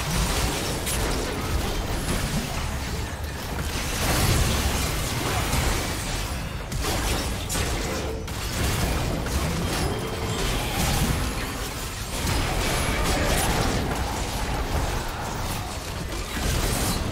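Game characters' attacks clash and crackle.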